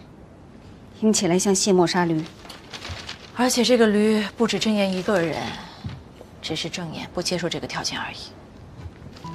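A young woman speaks calmly and coolly.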